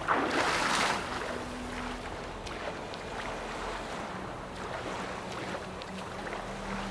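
A swimmer's strokes splash softly through the water.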